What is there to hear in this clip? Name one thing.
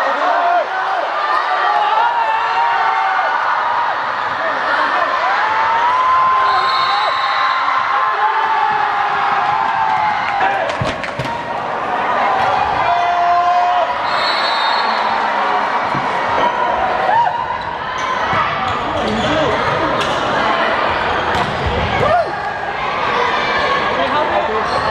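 Squeaky sneakers squeal on the hard floor.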